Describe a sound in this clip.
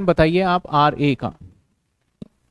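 A man speaks close to a microphone, explaining calmly.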